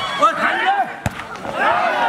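A volleyball thumps as a player spikes it.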